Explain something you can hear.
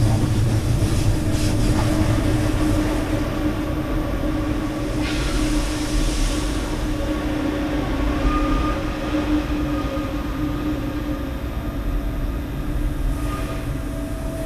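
A train rumbles steadily along the rails with a low hum.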